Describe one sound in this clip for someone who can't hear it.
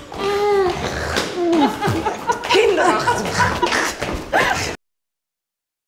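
Several women scream and whimper in fear close by.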